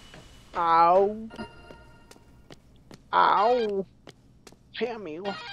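A young man exclaims loudly and animatedly into a microphone.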